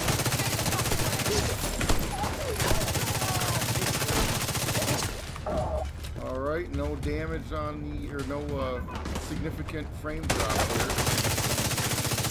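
Rapid automatic gunfire rattles close by.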